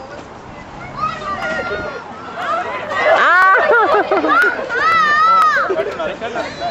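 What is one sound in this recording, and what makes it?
A crowd of men and women cheer and whoop loudly.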